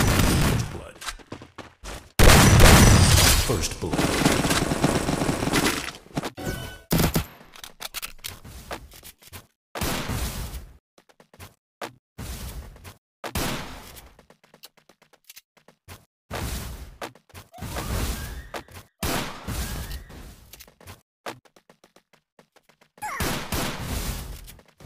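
Footsteps patter on the ground as a figure runs.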